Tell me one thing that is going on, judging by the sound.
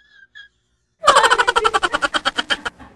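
Young women laugh loudly in quick bursts.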